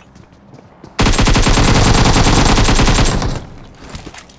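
Rapid gunfire rattles loudly in a long burst.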